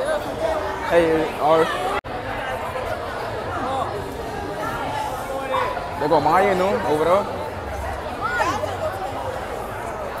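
Young women talk and shout excitedly close by.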